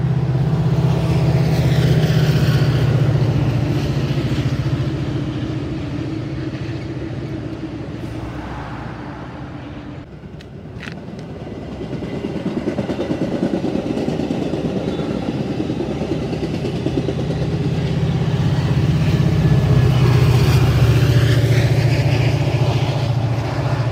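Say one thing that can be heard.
A diesel locomotive rumbles loudly nearby as a train rolls past.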